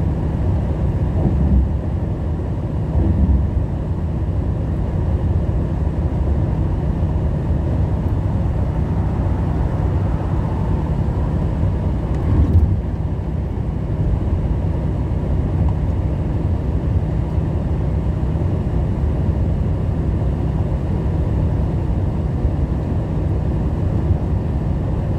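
A heavy truck engine drones steadily inside the cab.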